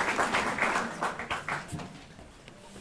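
An audience applauds in an echoing hall, then the applause dies away.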